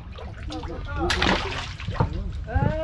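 Water splashes as a fish is dropped in.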